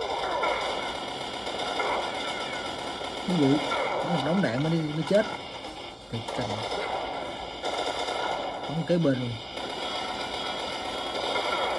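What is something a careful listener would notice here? Gunshots from a video game crackle through a small tablet speaker.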